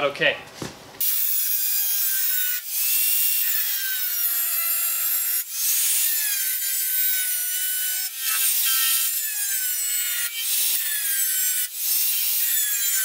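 A handheld grinder whines loudly against metal, its pitch wavering as it sands.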